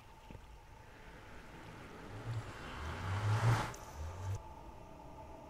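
A magical portal hums and swells with a rushing whoosh.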